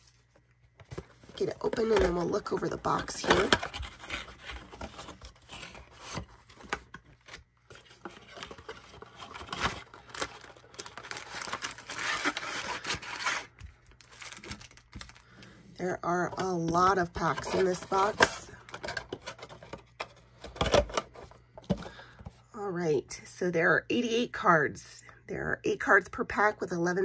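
Cardboard and plastic wrapping rustle while being handled.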